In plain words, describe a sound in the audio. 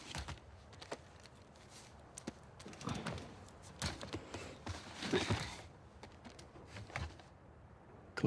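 Clothing and gear rustle as someone shifts about.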